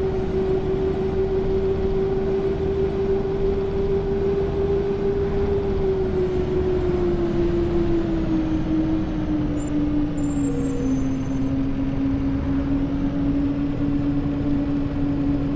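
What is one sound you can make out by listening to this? A bus engine hums steadily, its pitch slowly dropping as it slows.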